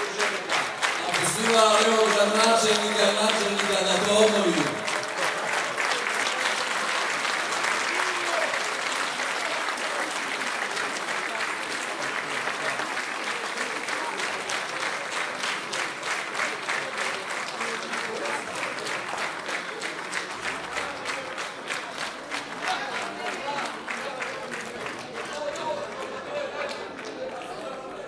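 An audience claps loudly and steadily.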